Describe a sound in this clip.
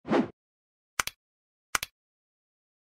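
A button clicks twice.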